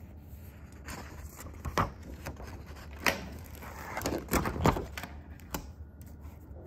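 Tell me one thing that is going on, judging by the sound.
Something knocks and rustles on a hard surface as it's handled.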